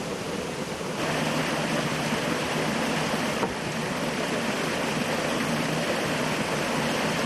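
Rushing water churns and splashes loudly close by.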